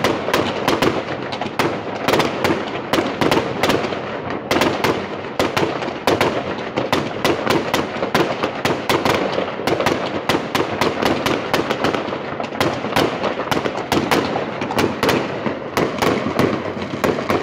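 Fireworks crackle and sizzle after bursting.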